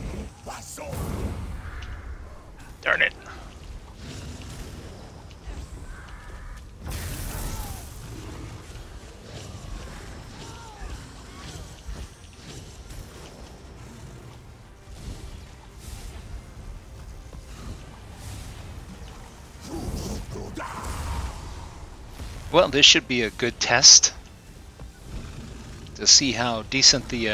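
Lightning spells crackle and zap in a fantasy battle.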